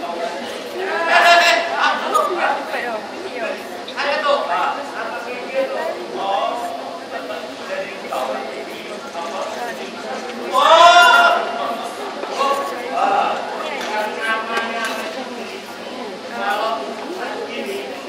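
A man speaks with animation through a microphone in an echoing hall.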